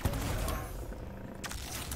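An energy weapon fires with a crackling blast.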